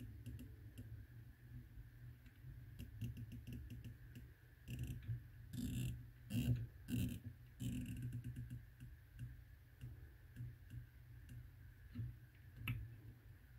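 A turret dial clicks in quick steps as fingers turn it.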